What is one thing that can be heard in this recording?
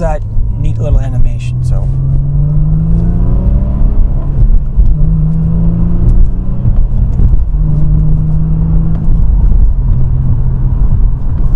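A car engine revs up hard as the car speeds up, dropping in pitch briefly at each gear change.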